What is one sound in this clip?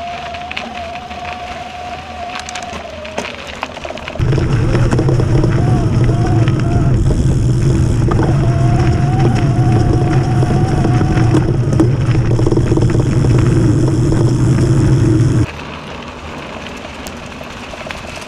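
Bicycle tyres rumble and crunch over a frosty dirt track.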